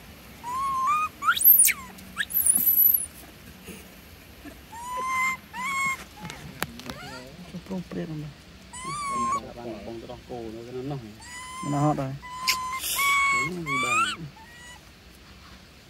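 Monkeys squeak and chirp in short, high calls close by.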